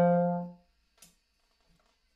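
A horn is set down with a soft knock.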